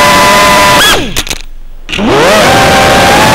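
A small drone's motors cut out briefly, then spin back up.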